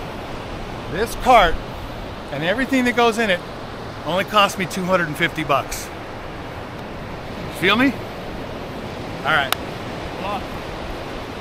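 An older man talks with animation close by, outdoors in wind.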